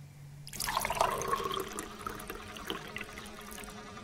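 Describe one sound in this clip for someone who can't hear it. Water pours into a cup.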